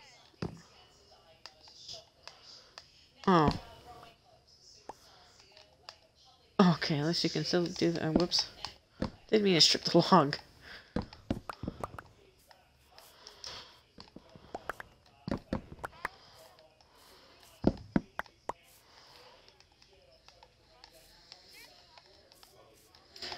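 Soft popping clicks sound as game blocks are broken and placed.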